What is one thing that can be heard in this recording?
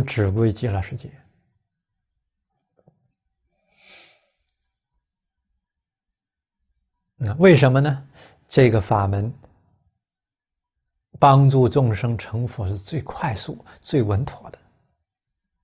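A middle-aged man speaks calmly and closely into a microphone, with pauses.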